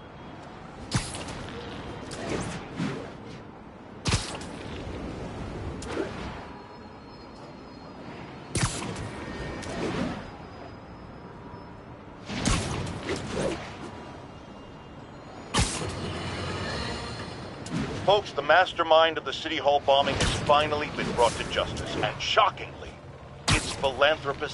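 Webs shoot out with sharp zipping thwips.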